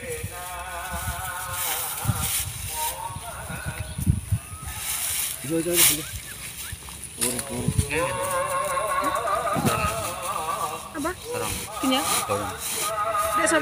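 Dry rice straw rustles as it is handled and tied.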